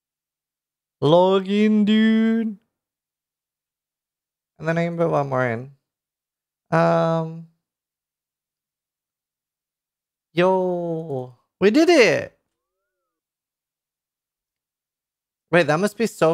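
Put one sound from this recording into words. A young man speaks with animation into a close microphone, in short bursts.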